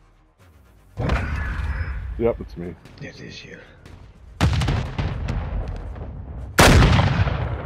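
A sniper rifle fires loud, echoing shots.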